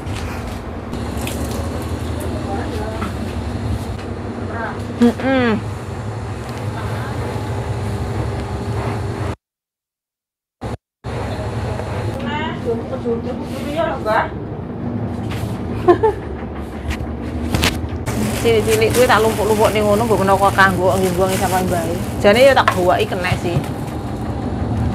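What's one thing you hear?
A young woman speaks close by in a lively voice.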